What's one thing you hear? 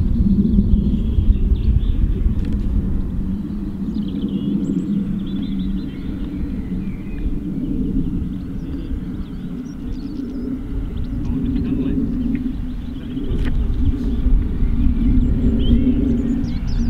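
An electric model airplane's motor drones far overhead.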